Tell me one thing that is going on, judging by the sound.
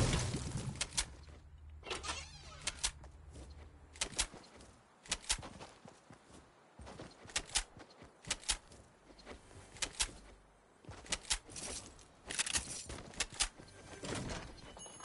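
A pickaxe strikes metal with sharp, repeated clanks.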